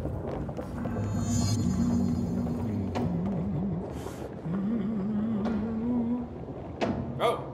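A man hums to himself.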